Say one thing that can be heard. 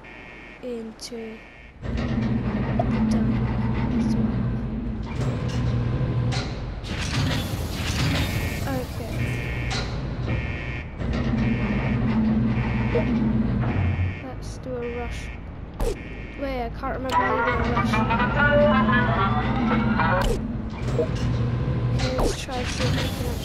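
Soft electronic beeps and clicks sound as game menus open and close.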